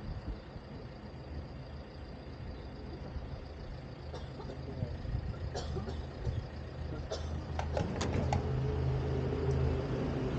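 A fuel pump hums steadily.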